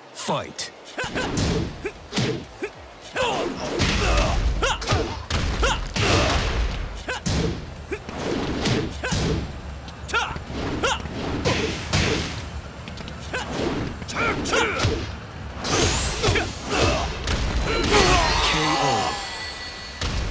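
Punches and kicks land with heavy, rapid thuds.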